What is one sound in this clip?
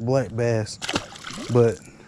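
A fish splashes into water.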